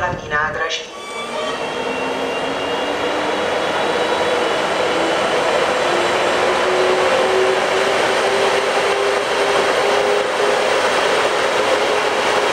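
An electric train rolls slowly into the station with a steady rumble and a whine.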